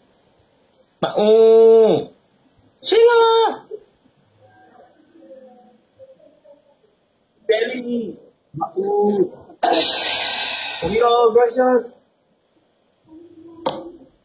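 A young man talks over an online call.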